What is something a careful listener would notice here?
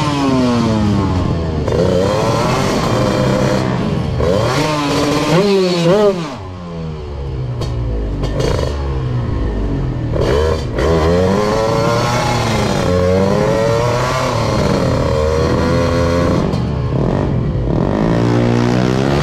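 A motorcycle engine revs hard, rising and falling in pitch, close by.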